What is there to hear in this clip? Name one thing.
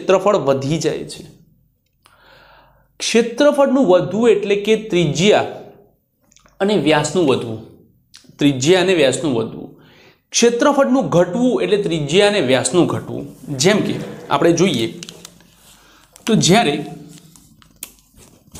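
A man lectures calmly and clearly, close to a microphone.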